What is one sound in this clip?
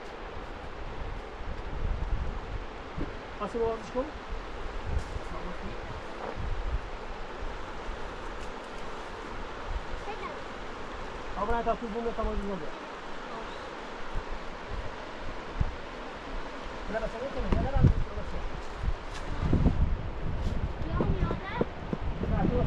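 A river rushes steadily in the distance.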